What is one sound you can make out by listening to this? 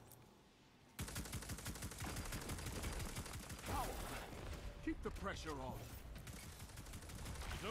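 Game gunfire rattles in quick bursts.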